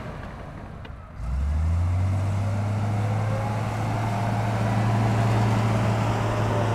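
A bulldozer pushes dirt and rocks.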